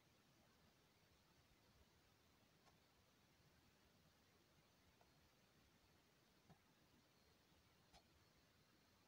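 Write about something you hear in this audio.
A finger taps softly on a phone's touchscreen.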